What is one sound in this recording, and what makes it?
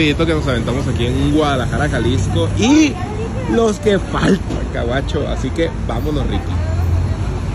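A young man talks with animation close by.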